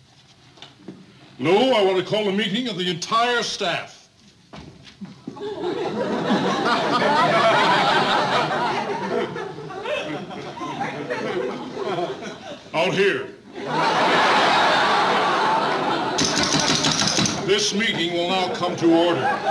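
An elderly man speaks loudly and with animation, close by.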